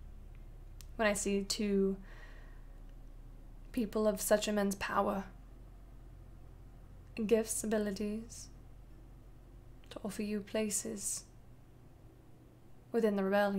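A young woman speaks calmly into a microphone, heard over an online call.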